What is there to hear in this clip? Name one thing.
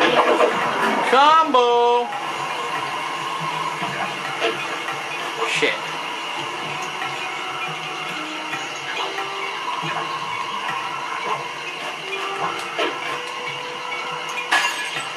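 Soft, mysterious game music plays steadily.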